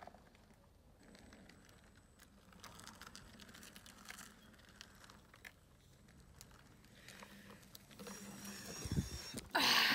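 A self-balancing scooter whirs as it rolls closer over rough pavement.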